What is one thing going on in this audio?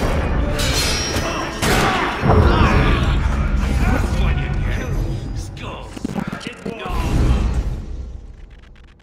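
Swords clash and strike in a brawl.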